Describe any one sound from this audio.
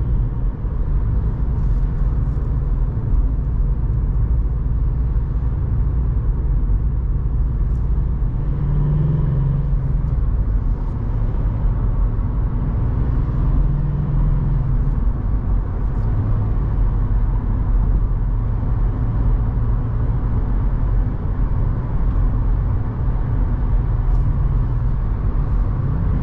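A car engine hums steadily from inside the cabin as the car drives along.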